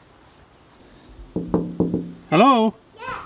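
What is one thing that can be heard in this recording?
A fist knocks on a glass window.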